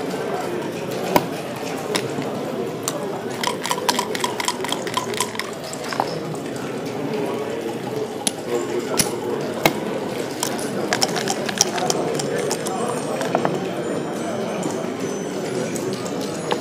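Plastic checkers click as they are moved on a board.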